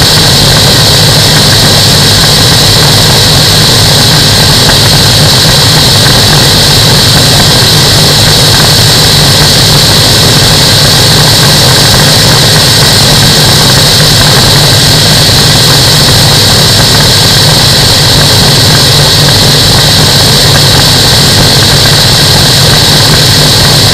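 Wind rushes hard past the microphone.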